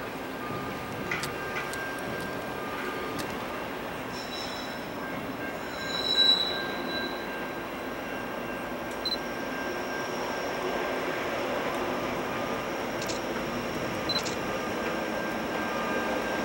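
A freight train rumbles steadily in the distance, slowly growing louder as it approaches.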